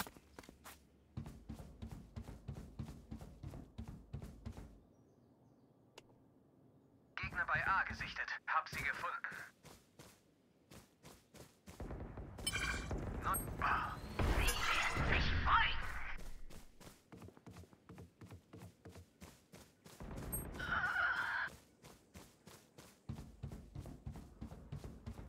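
Footsteps tread quickly and steadily on a hard floor.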